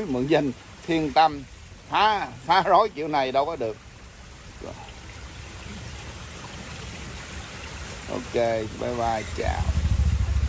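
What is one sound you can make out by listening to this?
A man speaks calmly and casually up close.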